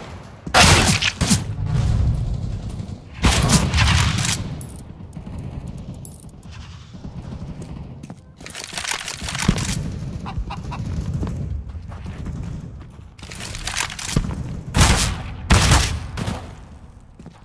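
Gunshots ring out loudly, with sharp cracks and echoes.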